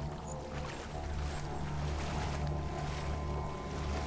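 Footsteps wade and splash through shallow water.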